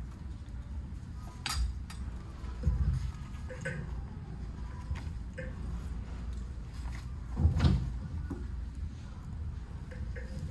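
Pages rustle as a book is handled.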